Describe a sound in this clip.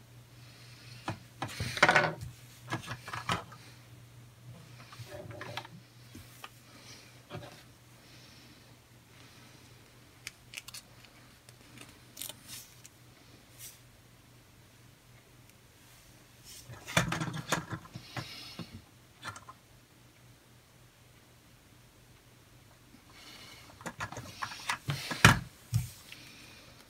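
Small plastic and metal parts click and tap as a toy car is handled.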